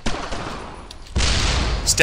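A rifle fires nearby.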